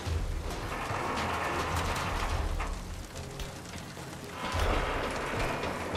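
Footsteps thud on a metal surface.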